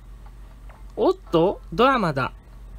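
A young girl's voice shouts excitedly, high-pitched and animated.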